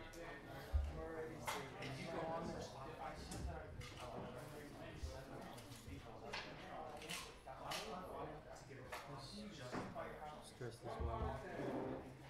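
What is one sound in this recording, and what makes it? Plastic game pieces click softly on a table.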